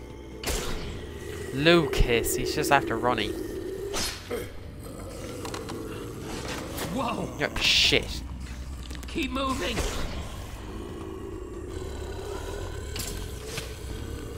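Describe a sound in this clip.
Sword blows strike with sharp thuds.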